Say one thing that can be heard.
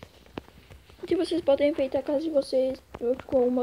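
A boy speaks close to a microphone.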